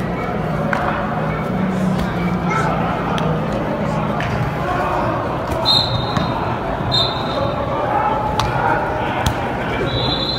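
Football players collide and thud against pads in a large echoing hall.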